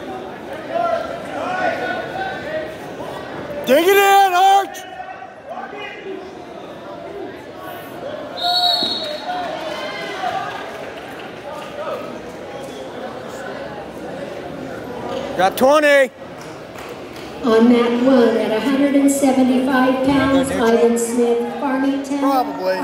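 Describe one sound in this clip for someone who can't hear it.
Spectators shout encouragement in a large echoing hall.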